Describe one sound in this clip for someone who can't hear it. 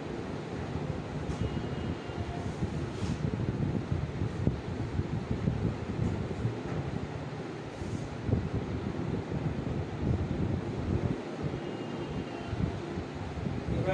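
A board eraser rubs and squeaks across a whiteboard.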